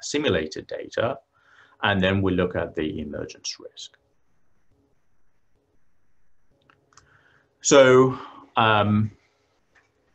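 A man speaks calmly over an online call, pausing now and then.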